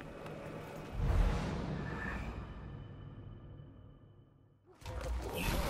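A deep boom rumbles and slowly fades.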